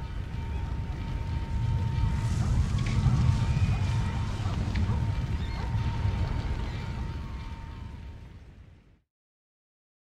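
A large fire roars and rumbles.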